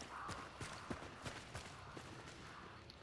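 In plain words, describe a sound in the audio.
Footsteps thud on a stone floor in an echoing tunnel.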